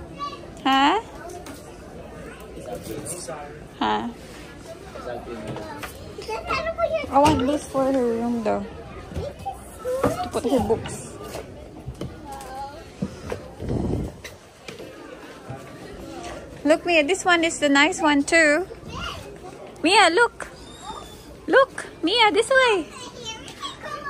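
A young girl talks and squeals playfully nearby.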